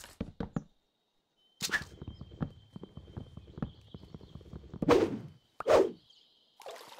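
Wooden blocks break with dull crunching knocks.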